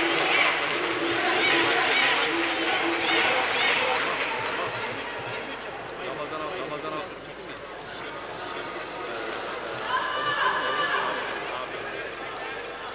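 Punches and kicks land with sharp slaps.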